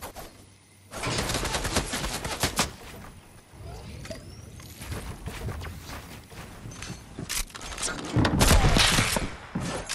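Building pieces clatter rapidly into place in a game.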